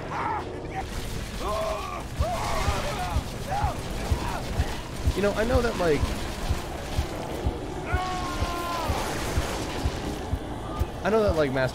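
Video game gunfire rattles in quick bursts.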